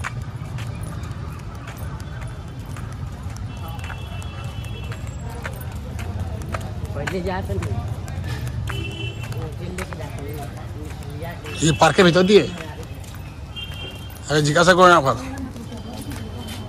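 Footsteps tap on pavement as two people walk.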